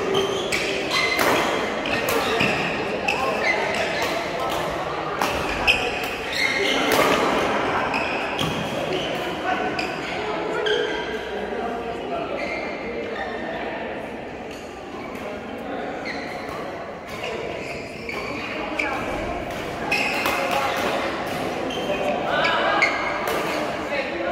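Several men call out to each other across the hall.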